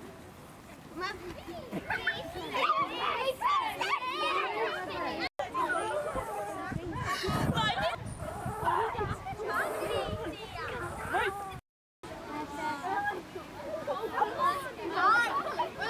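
Children chatter and shout excitedly outdoors.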